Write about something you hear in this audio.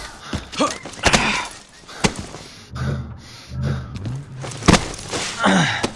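Hands clatter on ladder rungs while climbing.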